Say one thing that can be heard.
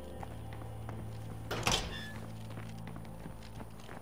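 A metal door opens.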